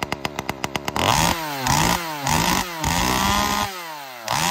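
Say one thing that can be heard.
A chainsaw engine revs up and down repeatedly.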